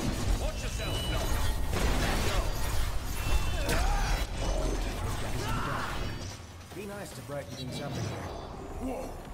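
Blades clash and strike in quick combat.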